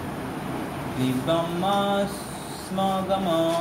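A group of men chant together in unison.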